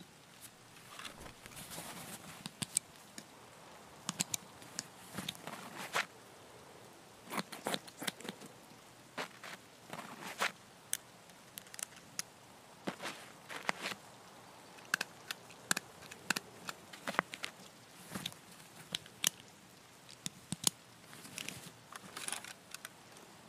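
Sharp clicks and rustles come as a medical kit is handled.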